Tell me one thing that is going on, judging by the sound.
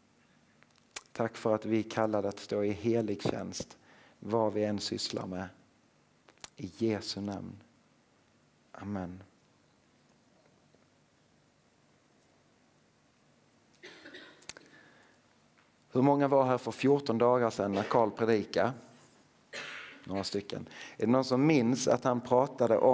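A man speaks calmly into a microphone, in bursts with pauses.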